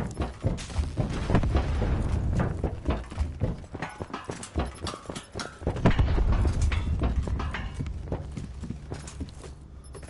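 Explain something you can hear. Footsteps clank quickly on a metal floor.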